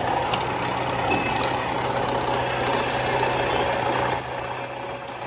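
A drill press grinds loudly into metal.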